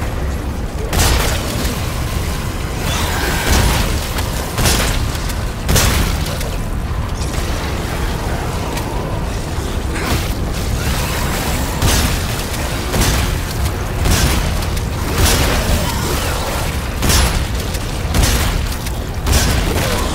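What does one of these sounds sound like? Guns fire in sharp, loud bursts.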